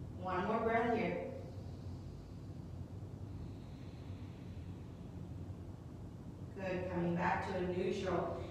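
A young woman speaks calmly, giving instructions close to a microphone.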